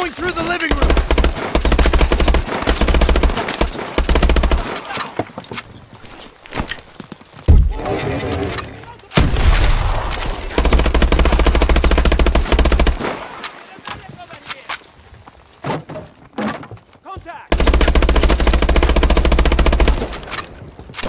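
Rapid automatic gunfire rattles in loud bursts.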